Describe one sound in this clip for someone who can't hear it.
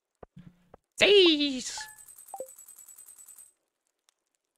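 A video game plays a rising, rapid ticking chime as points are added up.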